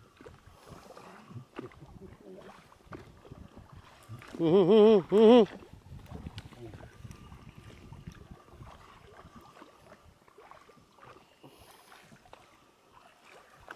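A fishing reel's handle turns with soft clicking and whirring.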